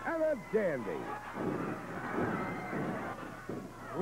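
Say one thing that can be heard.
A body thuds onto a wrestling mat.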